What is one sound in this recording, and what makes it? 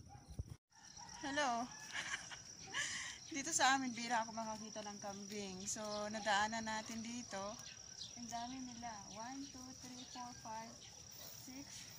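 A woman speaks cheerfully and with animation, close to the microphone.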